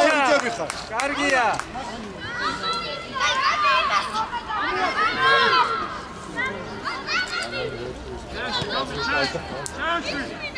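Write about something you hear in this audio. Children shout and call out.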